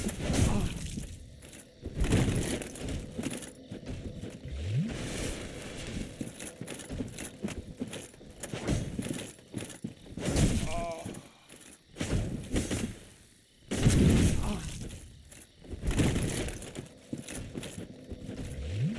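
Armoured footsteps crunch through undergrowth.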